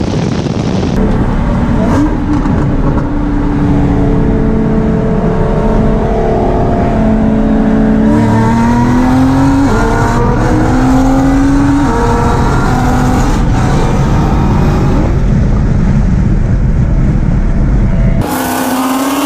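A supercharged V8 muscle car accelerates hard through the gears, heard from inside the cabin.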